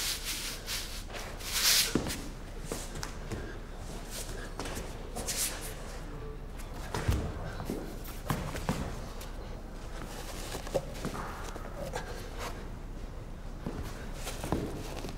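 A young man breathes heavily and grunts with effort.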